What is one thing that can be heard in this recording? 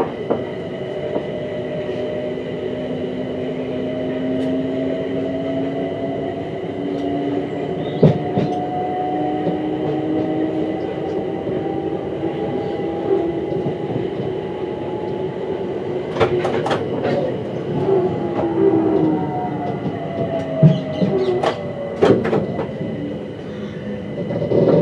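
Train wheels squeal with a high steady whine.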